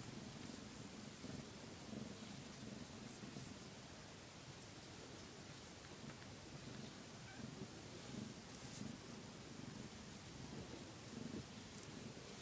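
A hand rubs softly through a cat's fur.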